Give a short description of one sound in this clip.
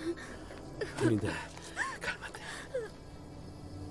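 A young woman sobs and cries.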